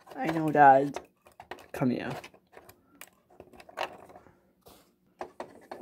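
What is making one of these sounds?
Small plastic toy figures click and tap as they are moved about.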